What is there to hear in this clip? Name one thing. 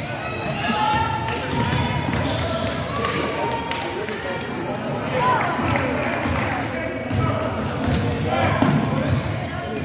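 Sneakers squeak on a hardwood court in an echoing gym.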